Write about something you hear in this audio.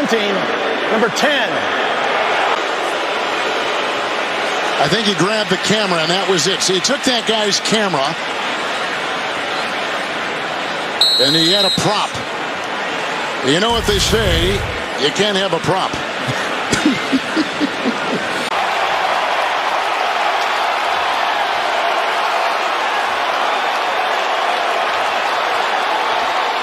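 A large stadium crowd cheers and roars.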